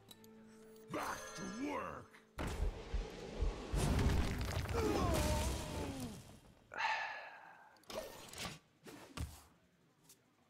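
Game sound effects whoosh, clash and chime as cards are played and attack.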